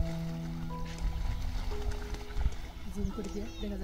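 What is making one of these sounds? Water splashes as a duck flaps and bathes.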